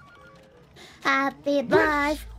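A man sings loudly and playfully.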